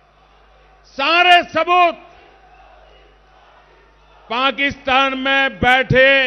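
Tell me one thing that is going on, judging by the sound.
An elderly man speaks forcefully into a microphone, heard through loudspeakers.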